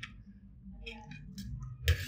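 A metal spoon scrapes against a metal plate.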